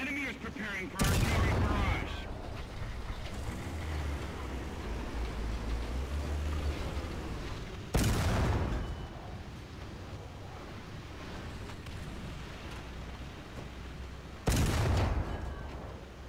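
A tank cannon fires with a loud, echoing boom.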